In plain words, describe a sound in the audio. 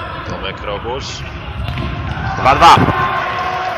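A ball is kicked hard on an indoor court.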